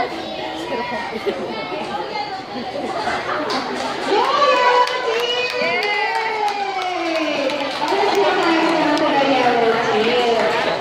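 A crowd of young children chatters and calls out nearby, outdoors.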